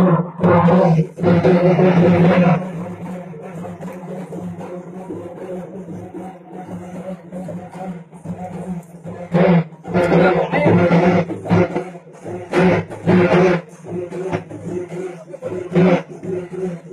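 A crowd of men chatters loudly close by.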